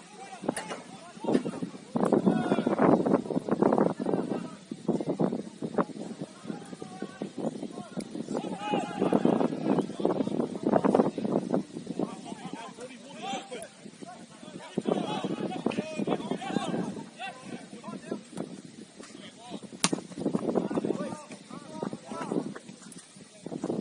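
Young men shout to each other from a distance outdoors.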